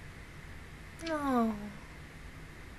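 A young woman close to a microphone gives a short, falling hum of amusement.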